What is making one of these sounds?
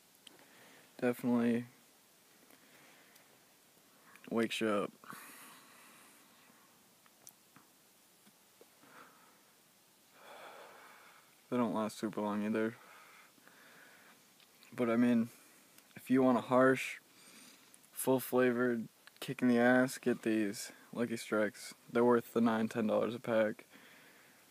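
A young man speaks quietly and casually, close by, in short bursts.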